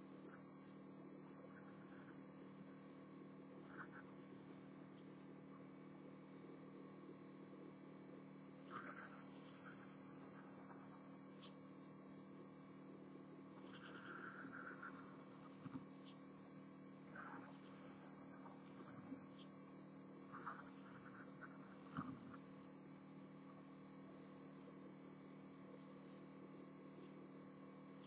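A marker squeaks softly across paper.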